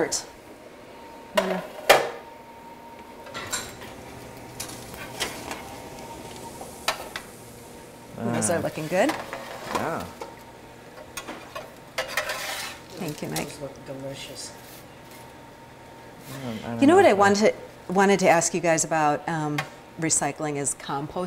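A metal spatula scrapes and clatters on a baking tray.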